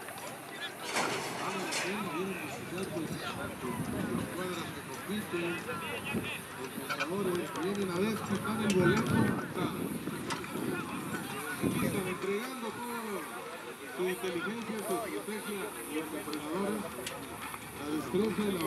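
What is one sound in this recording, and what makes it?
Horses' hooves thud softly on dirt.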